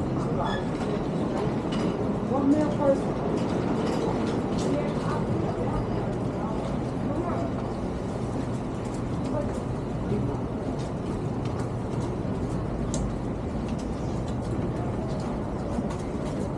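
City street traffic hums steadily outdoors.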